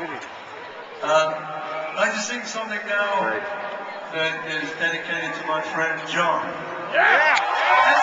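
A man sings through loudspeakers in a large arena.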